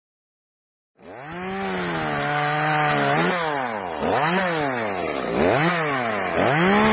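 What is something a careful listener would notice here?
A chainsaw engine runs and revs up and down.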